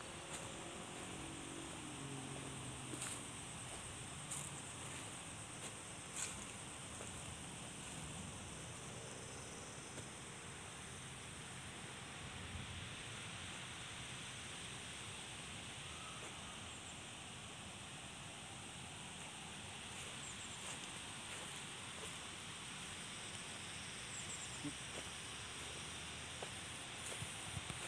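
Rain falls steadily on leaves outdoors.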